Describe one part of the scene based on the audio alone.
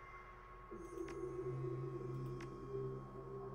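A game menu gives short clicks as an upgrade is chosen.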